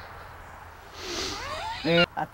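An elderly woman speaks, close by.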